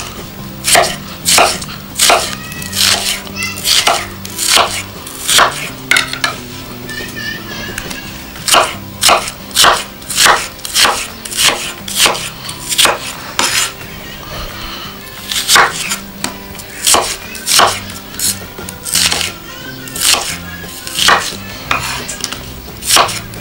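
A knife chops quickly and rhythmically on a wooden board.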